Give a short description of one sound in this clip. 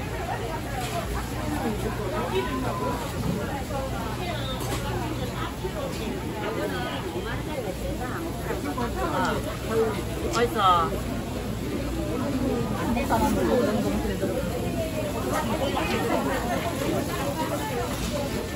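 A crowd of men and women chatters all around, close by.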